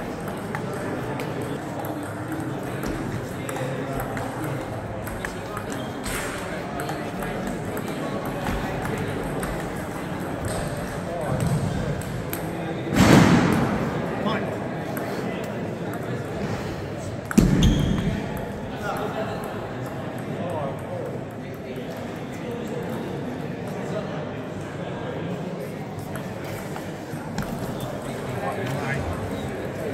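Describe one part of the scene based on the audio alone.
A table tennis ball bounces on the table.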